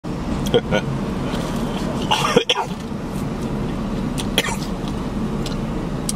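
A man bites and chews food noisily, close by.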